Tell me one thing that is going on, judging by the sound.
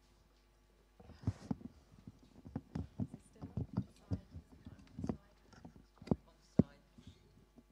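Microphone stands rattle and knock as they are adjusted.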